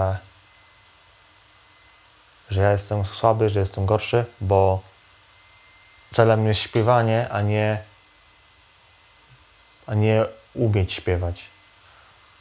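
A man speaks calmly and close by, in short phrases with pauses.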